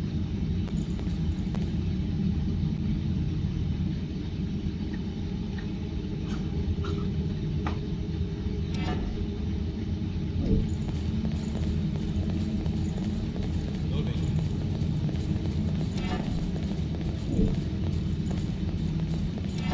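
Quick footsteps tap on a stone floor.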